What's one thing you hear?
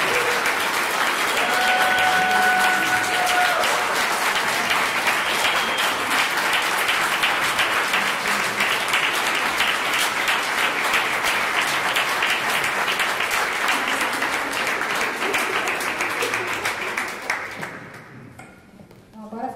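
An audience claps loudly and steadily indoors, then the applause dies away.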